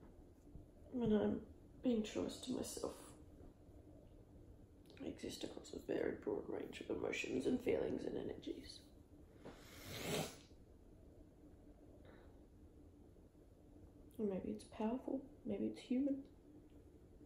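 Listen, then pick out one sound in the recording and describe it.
A young woman speaks softly and casually, close by, in short bursts.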